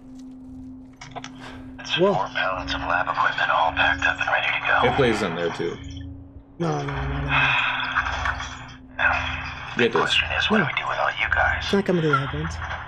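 A man speaks calmly in a recorded message played through a small recorder's speaker.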